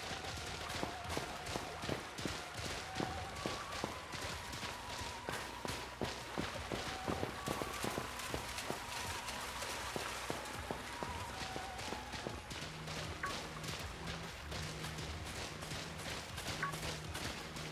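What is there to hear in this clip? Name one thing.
Quick footsteps patter across the ground.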